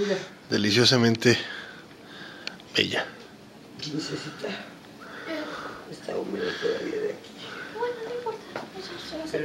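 Several people chat in the background of a room.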